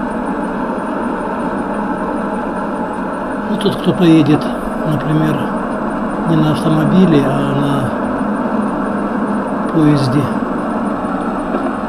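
Tyres hiss steadily on a wet road as a car drives along.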